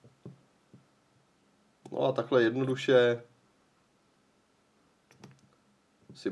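A finger clicks a small button several times.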